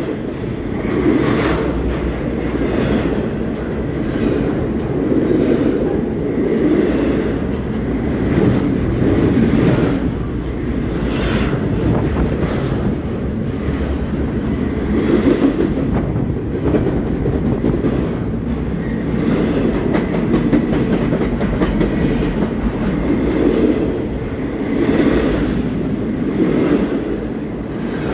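A freight train rumbles past close by, with steady low roaring.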